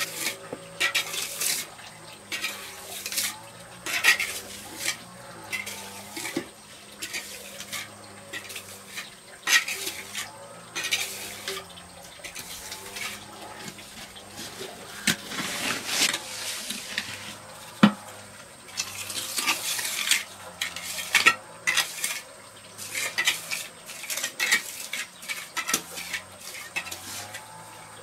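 A trowel scrapes and swishes across wet cement.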